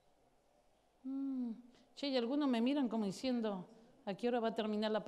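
A woman speaks expressively into a microphone, heard through loudspeakers.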